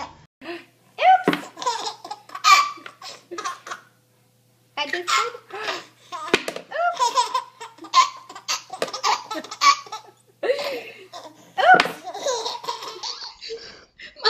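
A second baby giggles in bursts, close by.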